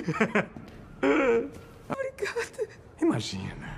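A woman cries out in distress.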